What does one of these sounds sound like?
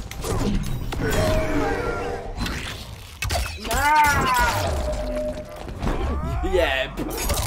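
A young man exclaims excitedly into a microphone.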